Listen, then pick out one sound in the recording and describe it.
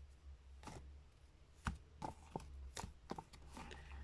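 Fingers tap lightly on a deck of playing cards.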